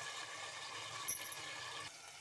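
A metal lid clanks down onto a pan.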